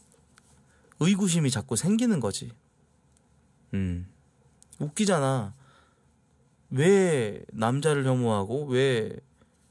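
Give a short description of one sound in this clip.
A young man talks closely into a microphone in short, animated bursts.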